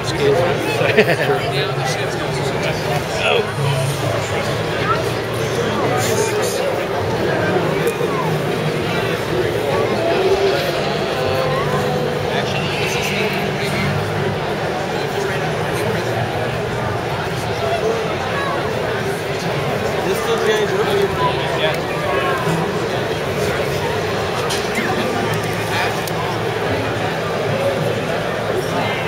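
A crowd of people chatters steadily all around in a large, busy hall.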